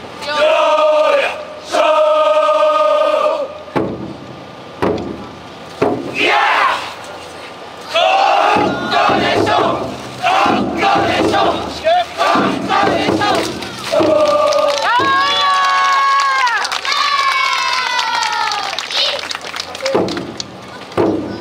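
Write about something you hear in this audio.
A group of men chant loudly in rhythm outdoors.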